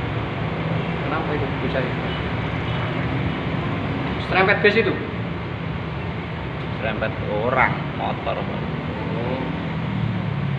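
Motorbike engines buzz by, rising and falling in pitch.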